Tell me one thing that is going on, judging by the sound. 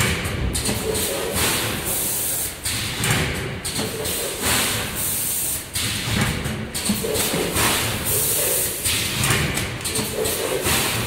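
A packaging machine whirs and clatters steadily.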